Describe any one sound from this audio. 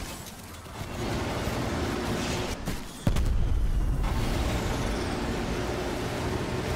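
A gun fires rapid shots.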